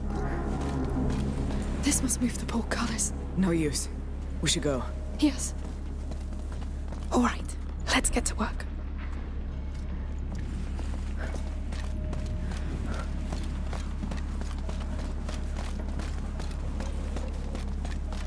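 Footsteps scuff on stone floors and steps.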